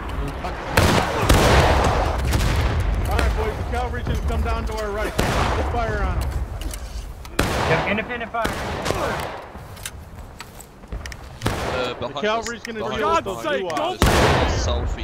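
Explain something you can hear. Rifles fire sharp, loud shots again and again.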